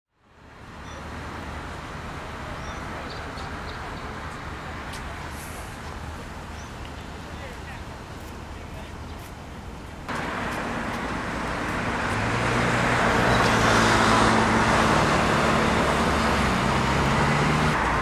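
Traffic rumbles past on a city street.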